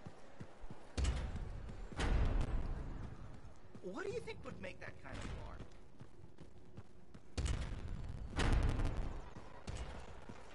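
Heavy gates rumble and grind open.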